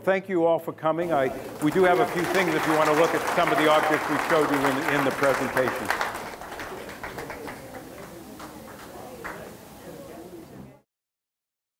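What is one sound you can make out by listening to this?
A group of older people chat at once close by.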